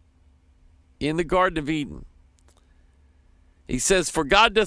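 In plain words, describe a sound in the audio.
A middle-aged man speaks calmly and close into a microphone, in short phrases with pauses.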